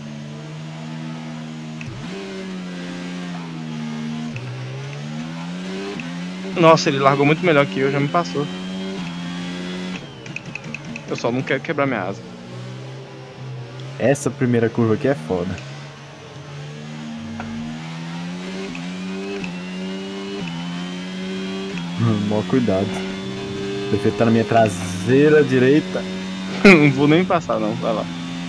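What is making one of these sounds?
A racing car engine hums steadily and revs up and down through the gears.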